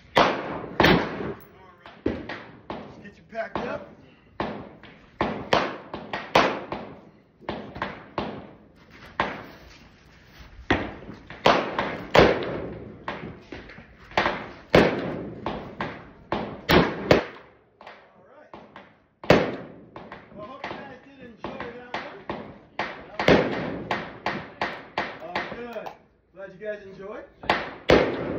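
Gunshots from a rifle crack sharply and echo, one after another at an uneven pace.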